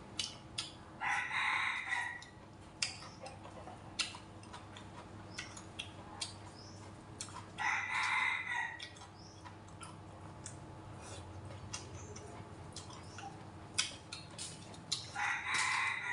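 A man slurps and chews food close by.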